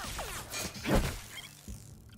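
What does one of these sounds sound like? A heavy blow thuds into a creature.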